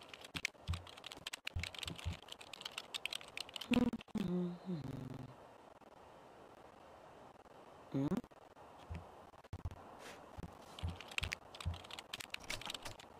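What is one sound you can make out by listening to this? Keys clatter as someone types quickly on a computer keyboard.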